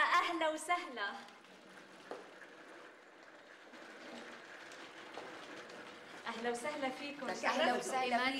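A serving cart rolls and rattles across the floor.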